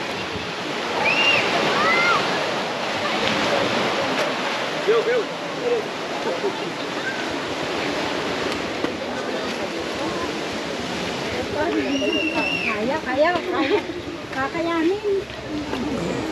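People chat nearby outdoors.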